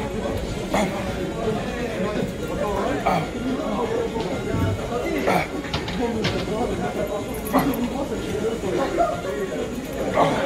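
Weight plates on a cable machine clink and clank.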